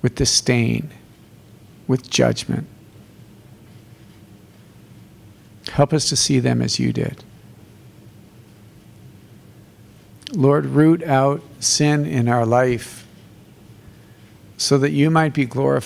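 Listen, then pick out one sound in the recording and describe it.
A man speaks slowly and solemnly through a microphone in an echoing hall, pausing between phrases.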